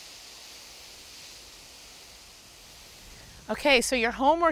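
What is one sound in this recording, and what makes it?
A garden hose nozzle sprays water with a steady hiss.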